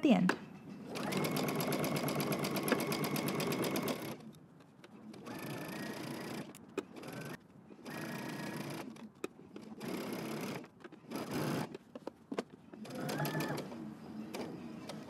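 A sewing machine stitches in short, steady bursts.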